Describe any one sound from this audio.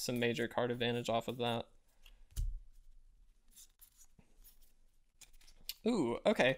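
Playing cards rustle and click softly.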